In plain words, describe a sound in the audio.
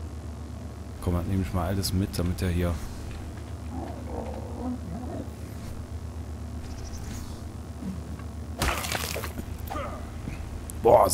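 A young man talks casually and closely into a microphone.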